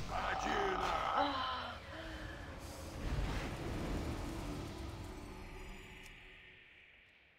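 Game spell and weapon effects clash in a battle.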